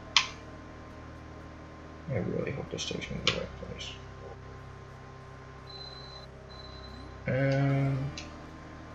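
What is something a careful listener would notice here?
Soft electronic game music hums steadily.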